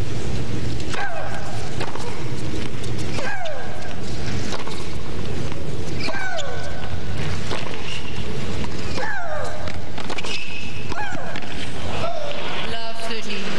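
A young woman grunts loudly as she hits the ball.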